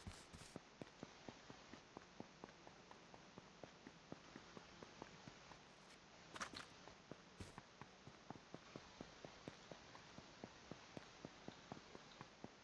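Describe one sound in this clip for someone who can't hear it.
Footsteps run quickly and steadily on hard ground.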